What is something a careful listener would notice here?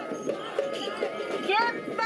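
A child calls out through a megaphone.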